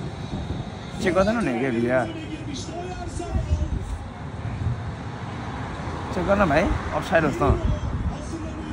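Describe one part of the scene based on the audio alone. A young man speaks briefly and calmly close by.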